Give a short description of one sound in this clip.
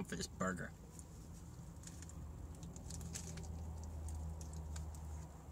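A young man bites and chews food with soft crunching.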